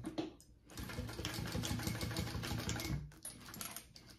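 A sewing machine runs fast with a steady whir.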